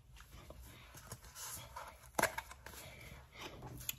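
A metal spoon clinks against a metal pot.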